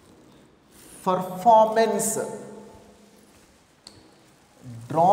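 A man speaks loudly and clearly to a room, as if lecturing.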